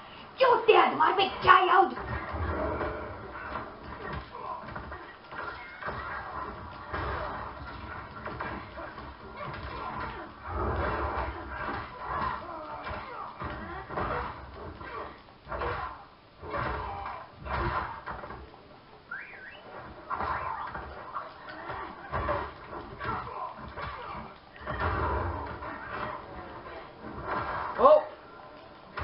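Fighting game sound effects of punches, blasts and grunts play from a television.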